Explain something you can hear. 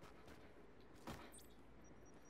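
A single distant gunshot cracks.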